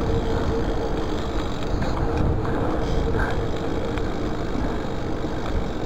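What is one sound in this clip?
Bicycle tyres rumble over paving stones.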